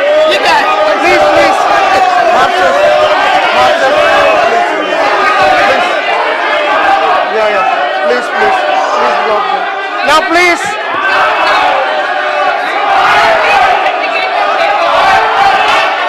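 A crowd of men shout and chant over one another in a large echoing hall.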